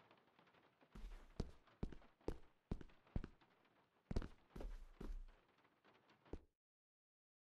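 Footsteps tread across a wooden floor indoors.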